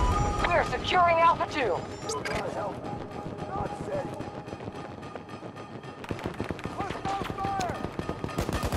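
Gunfire crackles in the distance.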